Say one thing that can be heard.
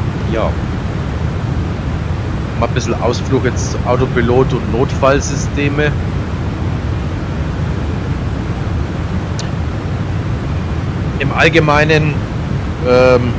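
A jet engine drones steadily in the background.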